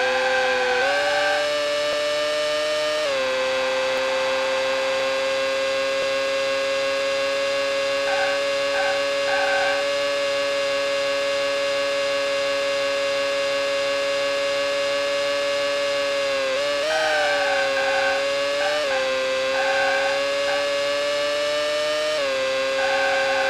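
A racing car engine whines steadily at high revs, dropping and rising in pitch as gears shift.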